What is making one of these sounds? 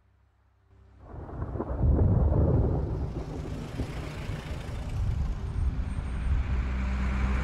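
Traffic rumbles past on a city street.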